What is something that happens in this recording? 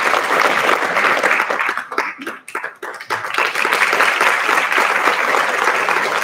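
An audience applauds loudly in a large hall.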